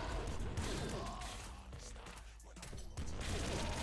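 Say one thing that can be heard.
Small explosions pop and burst.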